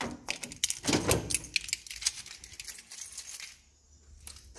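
A key rattles and clicks in a metal lock.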